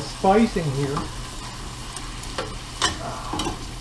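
A metal spoon scrapes and clinks in a pot.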